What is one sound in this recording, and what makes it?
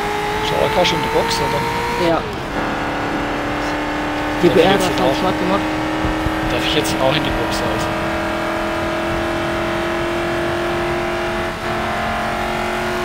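A race car engine drones steadily at high speed, shifting gear once.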